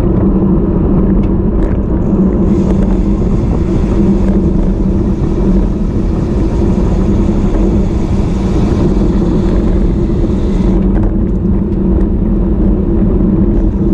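Strong wind rumbles and buffets loudly against a microphone outdoors.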